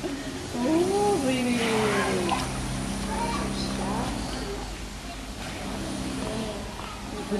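Water sloshes gently as a polar bear swims.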